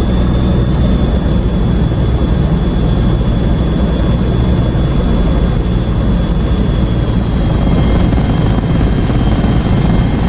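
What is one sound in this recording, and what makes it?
A helicopter's rotor thumps steadily, heard from inside the cabin.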